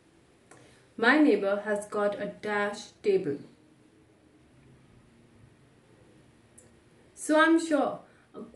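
A young woman speaks calmly and clearly into a nearby microphone, with pauses.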